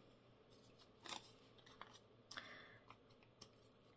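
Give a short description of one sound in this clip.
Paper crinkles and rustles softly.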